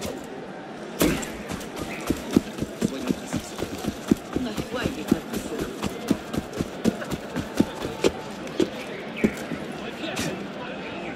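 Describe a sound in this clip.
Footsteps run quickly over ground.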